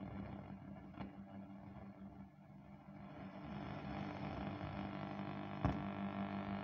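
A knob clicks on a radio.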